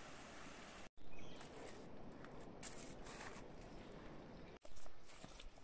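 A man scrapes at loose earth and stones with a stick.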